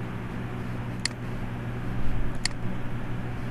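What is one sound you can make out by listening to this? A computer mouse clicks sharply.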